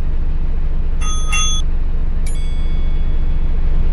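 A bus door chime beeps twice.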